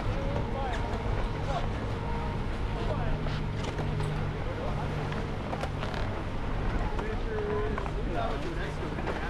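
Skis scrape over packed snow.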